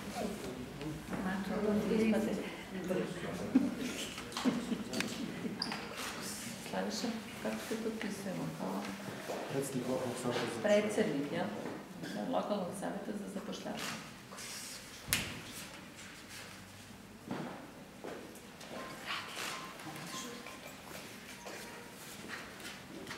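Pens scratch on paper while signing.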